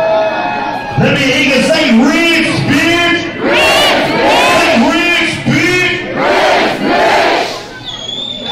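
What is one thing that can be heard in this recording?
A performer sings loudly through a loudspeaker system.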